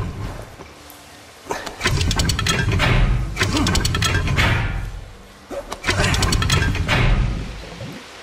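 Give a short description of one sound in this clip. A metal lever clanks as it is pulled.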